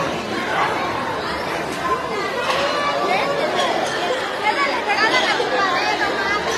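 Children squeal and shriek in high voices.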